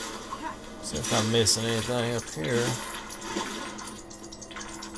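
Bright coin chimes jingle in quick bursts.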